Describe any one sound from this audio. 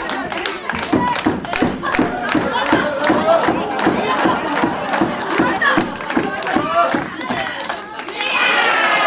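A crowd claps in a steady rhythm in a large hall.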